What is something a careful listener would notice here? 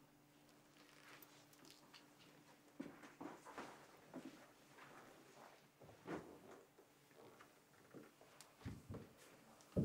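Footsteps tap on a wooden floor.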